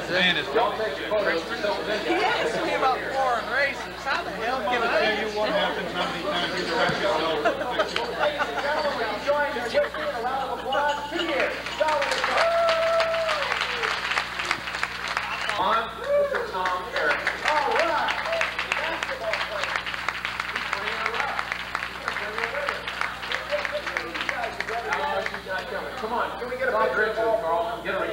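A crowd of men and women chatter loudly in a large room.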